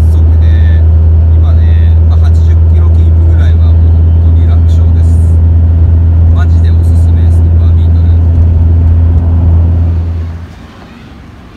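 A car engine hums low and steady while driving along a road.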